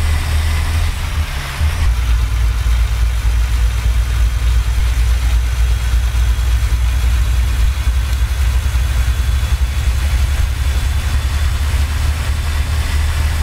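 A truck engine hums with a deep, steady drone.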